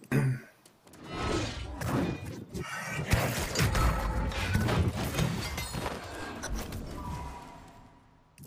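A blade clashes loudly in a fight.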